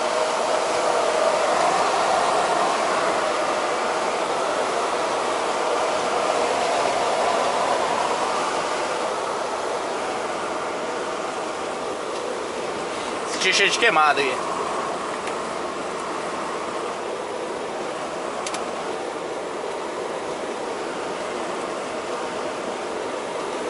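A truck engine hums steadily from inside the cab while driving.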